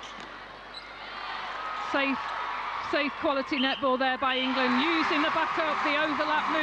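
A large indoor crowd cheers and roars.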